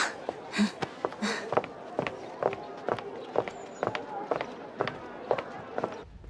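Footsteps tap along a street.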